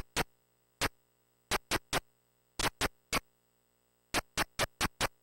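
Short hissing footstep blips from a retro video game sound in quick uneven bursts.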